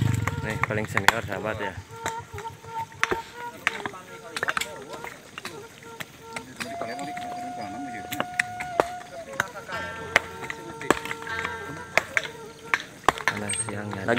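Stones knock and clink sharply as they are struck and moved.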